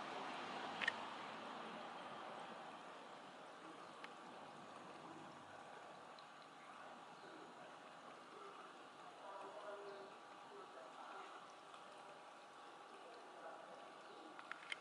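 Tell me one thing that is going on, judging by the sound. A cat laps water with soft, quick licks.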